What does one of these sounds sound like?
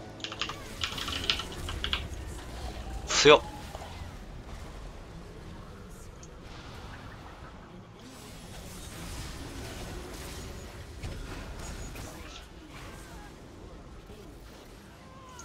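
Magic blasts and bursts crackle in a game battle.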